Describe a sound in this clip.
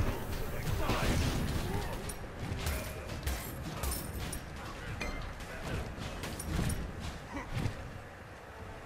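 Game fight sounds of hits and blasts clash rapidly.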